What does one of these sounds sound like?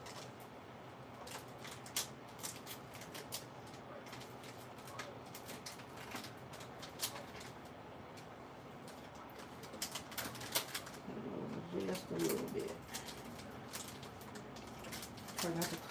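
Plastic wrappers crinkle and rustle as hands handle them.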